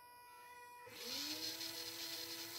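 A small electric motor suddenly whirs back up to speed.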